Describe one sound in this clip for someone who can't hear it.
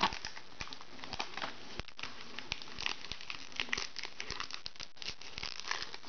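A foil booster pack crinkles as fingers tear it open.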